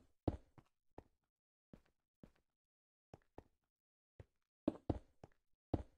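Stone blocks thud and crunch as they are placed, in short, uneven bursts.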